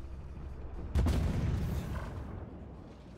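A tank cannon fires with a booming blast.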